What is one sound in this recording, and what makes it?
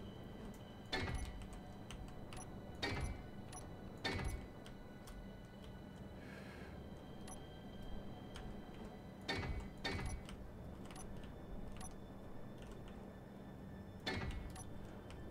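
Building blocks snap into place with short, sharp clunks.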